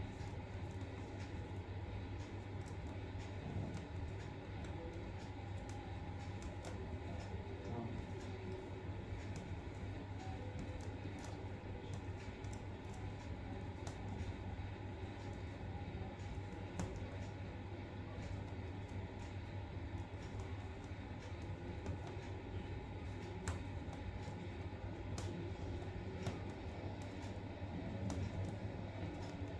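A needle pokes through taut fabric with faint ticks.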